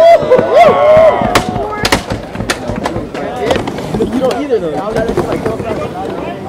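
A crowd whoops and cheers outdoors.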